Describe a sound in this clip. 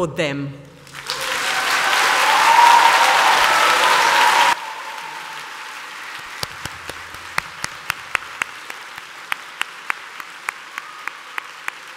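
An audience applauds loudly, then the clapping thins out.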